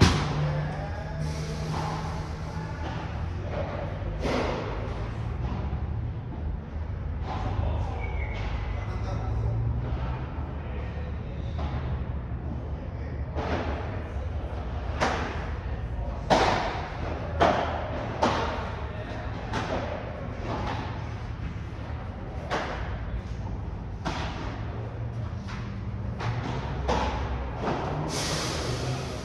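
A ball bounces off the court and glass walls.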